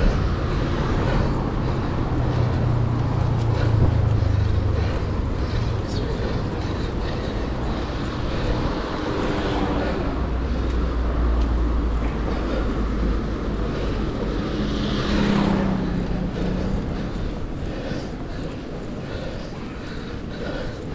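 City traffic hums nearby.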